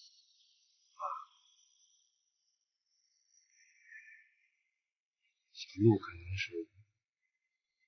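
A man speaks quietly and hesitantly nearby.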